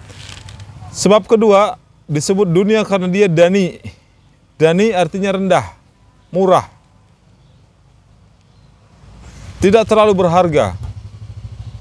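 A man chants in a loud, drawn-out melodic voice, close by.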